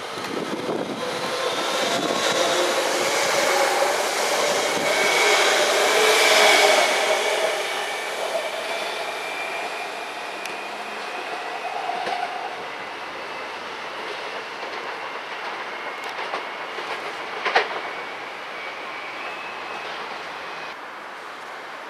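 Train brakes squeal with a high, steady whine.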